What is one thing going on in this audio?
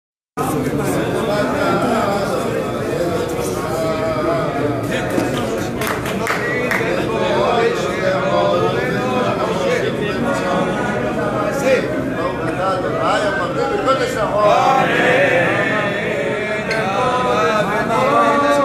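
A crowd of men sings together outdoors.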